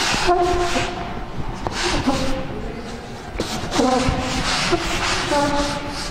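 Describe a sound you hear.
A man speaks steadily, as if explaining a lesson.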